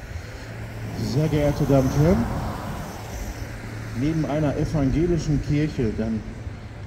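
A middle-aged man speaks into a microphone, heard through a loudspeaker outdoors.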